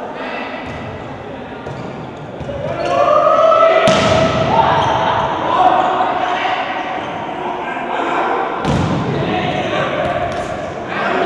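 A crowd in a large echoing hall cheers and shouts.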